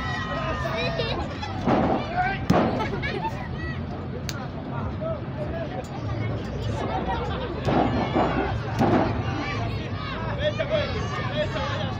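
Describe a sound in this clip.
A crowd of spectators shouts and cheers loudly outdoors.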